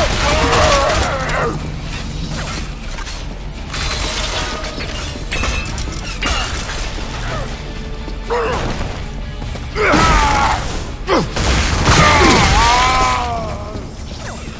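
Heavy gunfire blasts in loud bursts.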